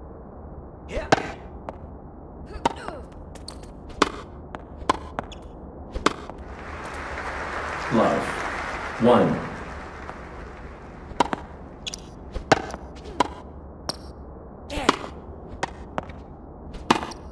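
Tennis rackets strike a ball with sharp pops, again and again.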